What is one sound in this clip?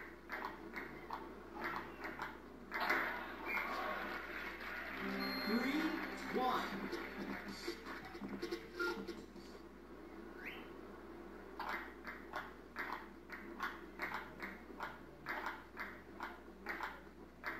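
A ping-pong ball clicks quickly back and forth off paddles and a table.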